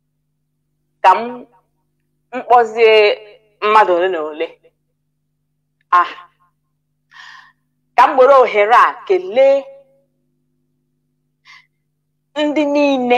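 A woman speaks calmly through a microphone, in short bursts with pauses.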